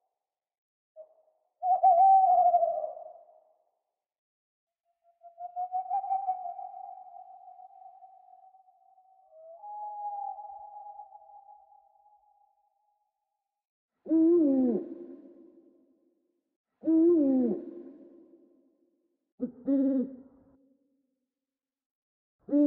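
An owl hoots and screeches in bursts, with short silences between the calls.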